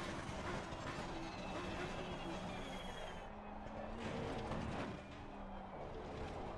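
A race car engine roars loudly, its pitch rising and dropping as it shifts gears.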